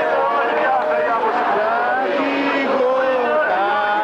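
A man shouts through a megaphone.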